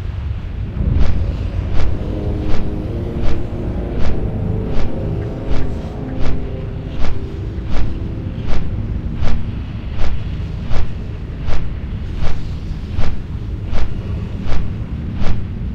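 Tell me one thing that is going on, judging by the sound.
Large wings beat in a slow, steady rhythm.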